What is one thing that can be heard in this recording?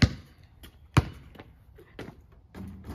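A basketball clangs against a hoop's rim and backboard.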